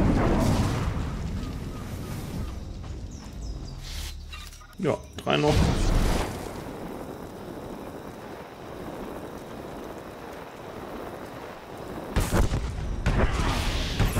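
Lightsabers hum and swing in video game combat.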